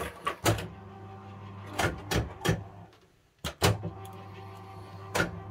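A fruit machine's reels clunk and click.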